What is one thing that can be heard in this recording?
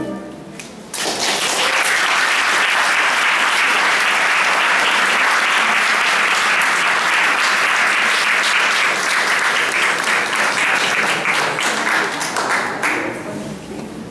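An audience applauds loudly, then the clapping fades.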